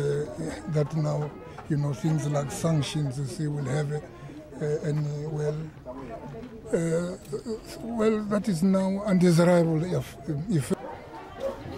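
An elderly man speaks outdoors, close by, with animation.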